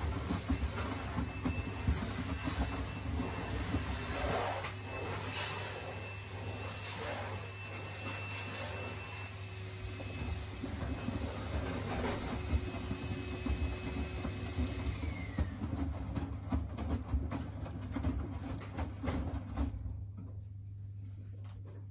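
A washing machine hums steadily as its drum turns.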